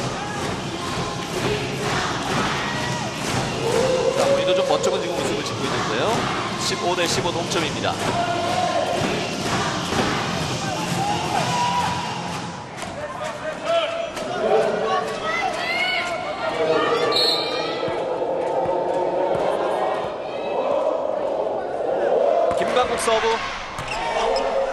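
A large indoor crowd cheers and claps, echoing through a big hall.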